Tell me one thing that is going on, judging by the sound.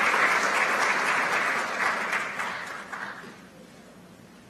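An audience applauds in a large hall and the clapping dies away.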